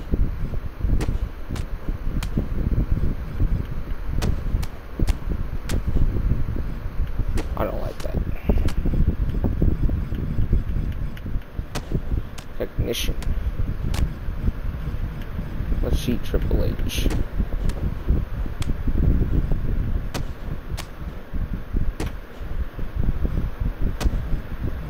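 Blows land with sharp slaps and thuds again and again.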